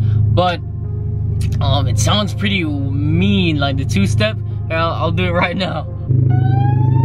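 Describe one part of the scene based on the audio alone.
A young man talks with animation, close by.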